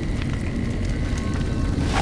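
Fire crackles in a barrel.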